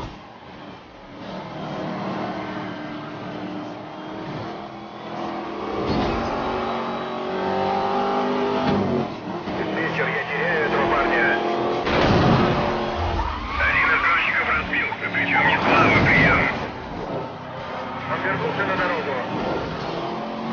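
A supercharged V8 sports car engine roars at full throttle.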